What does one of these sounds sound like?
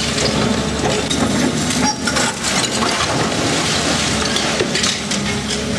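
Rubble clatters and scrapes under an excavator bucket.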